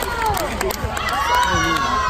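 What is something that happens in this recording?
A girl claps her hands.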